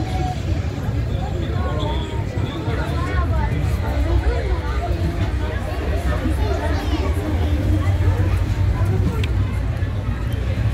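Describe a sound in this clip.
A crowd of people chatter and shout nearby.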